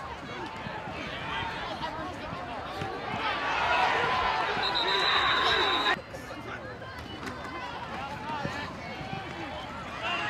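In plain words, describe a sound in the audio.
Football pads thud together as players collide.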